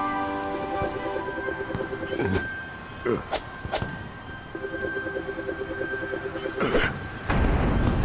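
Magical sparkling chimes swoosh up repeatedly.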